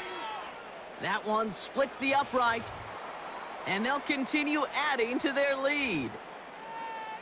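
A large stadium crowd cheers loudly.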